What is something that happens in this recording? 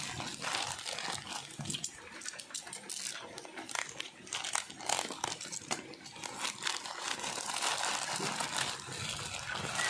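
A plastic bag crinkles and rustles as hands tear it open.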